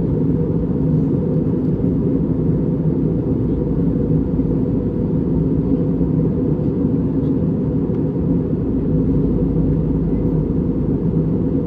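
Jet engines roar steadily inside an airliner cabin in flight.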